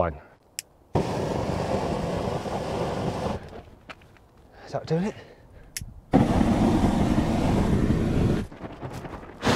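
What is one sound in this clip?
Flames roar in a steady burst from a spray torch.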